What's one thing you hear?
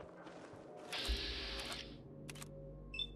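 A video game's targeting mode switches on with a sudden whoosh.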